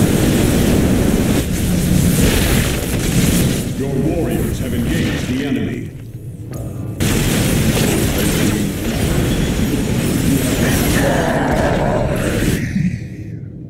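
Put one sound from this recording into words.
Explosions boom in a game battle.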